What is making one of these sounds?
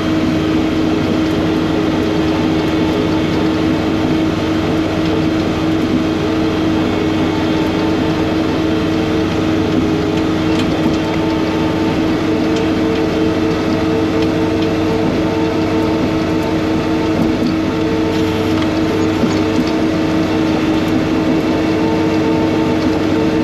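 A snow blower engine roars steadily close by.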